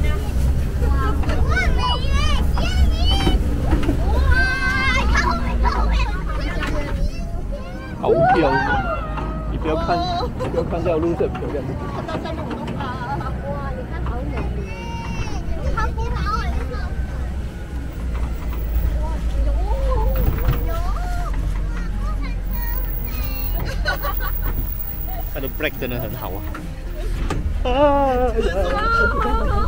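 A vehicle engine rumbles low as it climbs.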